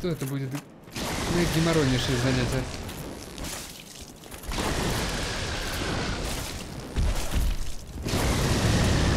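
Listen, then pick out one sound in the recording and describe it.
Crackling lightning bursts out with a loud roar.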